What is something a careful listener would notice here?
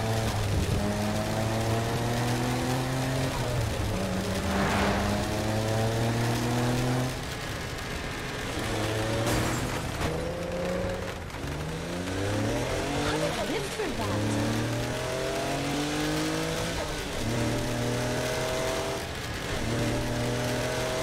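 A car engine roars at high revs, rising and dropping as it shifts through gears.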